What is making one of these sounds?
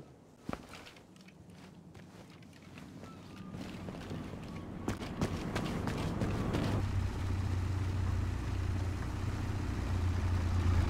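Footsteps shuffle over stone and gravel.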